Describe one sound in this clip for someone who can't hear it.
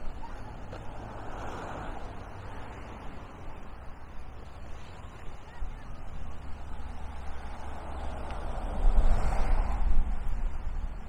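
Small waves wash gently against a shore.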